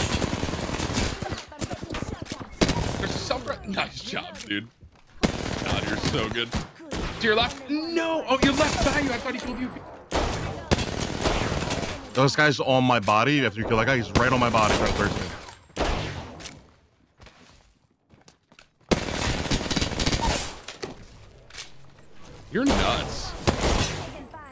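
Rapid gunfire bursts out in loud, sharp volleys.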